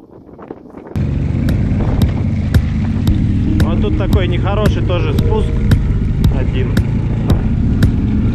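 A quad bike engine rumbles steadily at close range.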